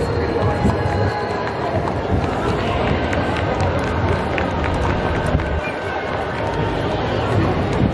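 Horses' hooves clop on pavement.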